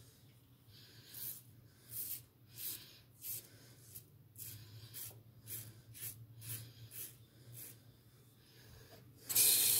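A razor scrapes through stubble in short, repeated strokes, close by.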